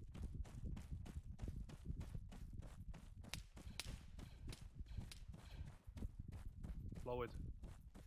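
Footsteps crunch quickly through dry grass.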